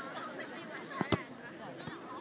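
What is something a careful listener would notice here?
A foot kicks a football with a dull thud.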